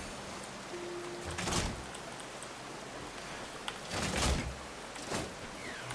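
A stream of water flows steadily nearby.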